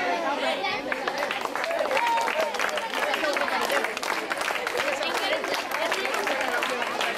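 Children clap their hands in quick rhythm.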